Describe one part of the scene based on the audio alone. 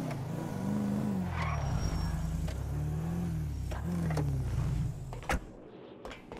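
A car engine revs up and down as a vehicle drives.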